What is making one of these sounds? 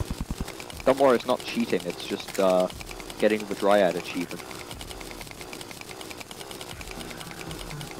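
A drill whirs and grinds with a fast, rattling pulse.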